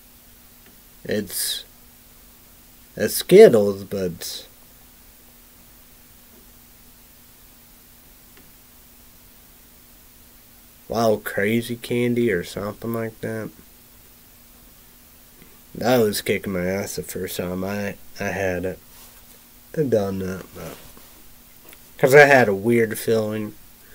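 A man speaks calmly into a nearby microphone, in short bursts with pauses.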